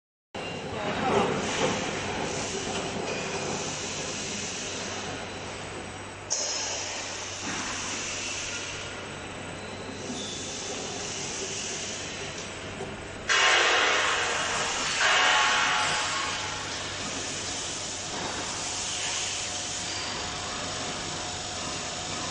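A machine whirs and rumbles steadily in a large echoing hall.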